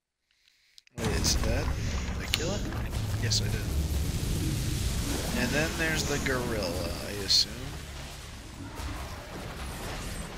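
Laser weapons fire in quick zapping bursts.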